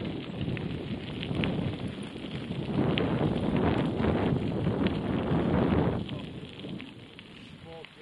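Bicycle tyres roll over a gravel path.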